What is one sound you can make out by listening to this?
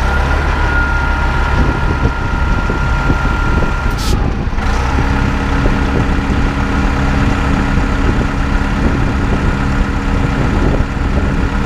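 A city bus engine idles with a low rumble.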